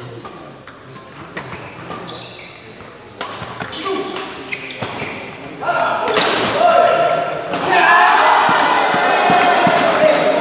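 Players' shoes squeak on the court floor.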